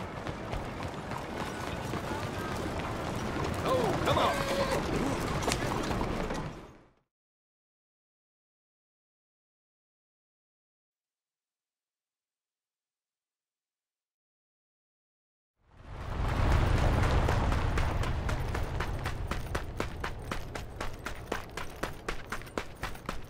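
Footsteps tread steadily on a dirt path.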